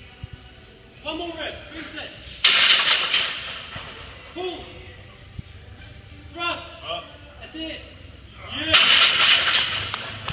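Men shout encouragement nearby.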